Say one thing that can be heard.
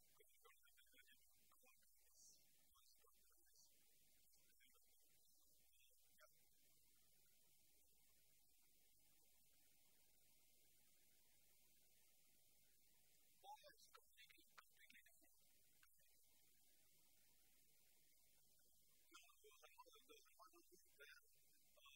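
A man speaks calmly to an audience, faint and at a distance, with long pauses.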